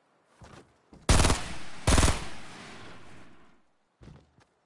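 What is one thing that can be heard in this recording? A rifle fires several loud shots that ring out and echo.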